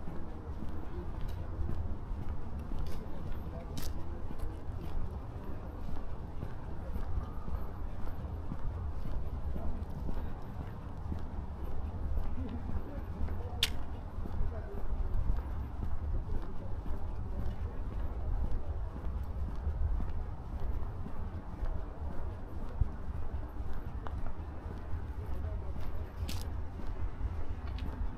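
Footsteps tap on a paved path.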